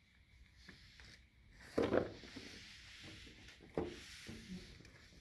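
A towel rubs and brushes against plastic window blind slats.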